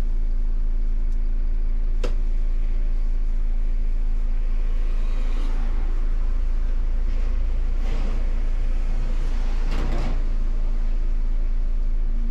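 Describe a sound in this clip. A bus engine idles with a steady low hum.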